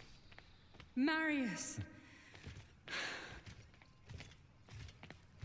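A woman calls out with a lilting voice from a short distance.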